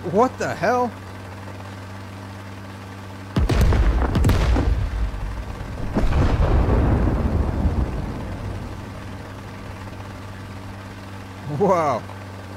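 A helicopter's engine and rotor drone steadily.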